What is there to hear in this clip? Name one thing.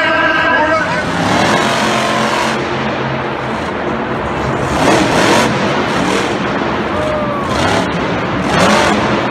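A truck engine roars and revs loudly.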